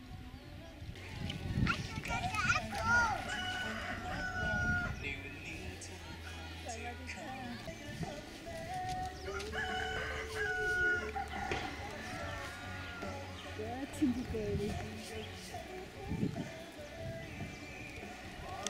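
Young children chatter and call out in high voices.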